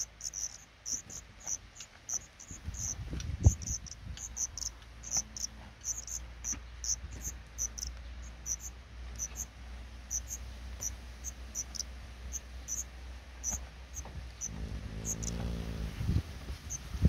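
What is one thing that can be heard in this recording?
Nestling birds peep in quick, high, thin chirps.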